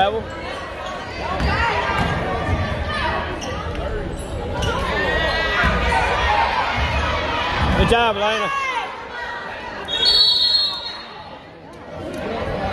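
Sneakers squeak on a hardwood basketball court in a large echoing gym.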